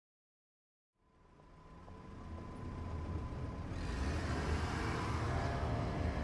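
City traffic rumbles and idles, fading in from silence.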